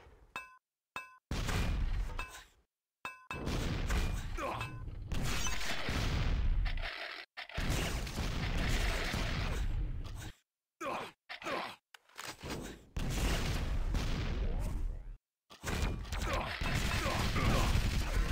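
Gunshots and blasts ring out repeatedly.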